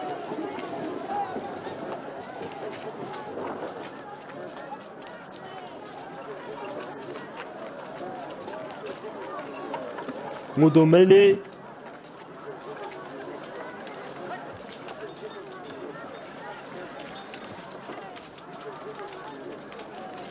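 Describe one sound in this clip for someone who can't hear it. A crowd of men and women murmur and chatter nearby.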